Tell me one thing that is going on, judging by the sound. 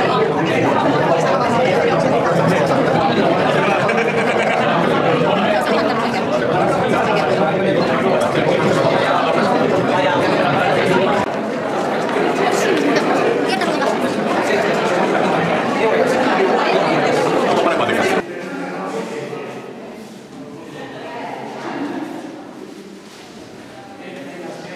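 A crowd of adults chatters loudly in an echoing room.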